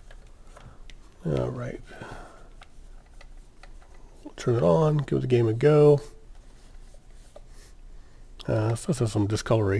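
A cloth rubs and squeaks against a plastic case.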